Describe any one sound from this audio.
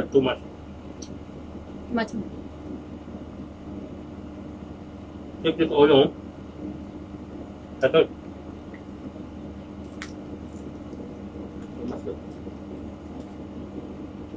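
A man chews food up close.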